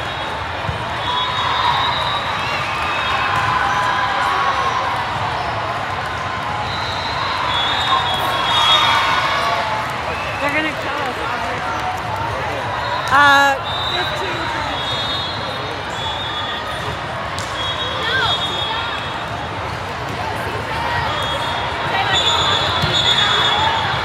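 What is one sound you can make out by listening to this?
A volleyball is struck with dull slaps.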